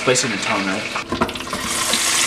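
A lid clicks shut on a deep fryer.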